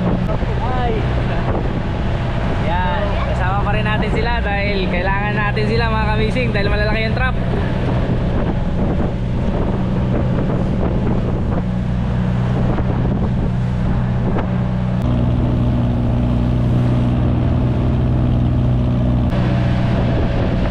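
Water rushes and splashes against the hull.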